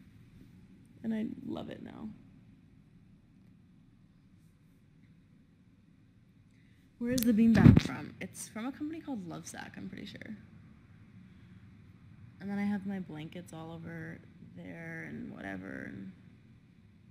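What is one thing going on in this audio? A young woman talks casually and close up, in short bursts.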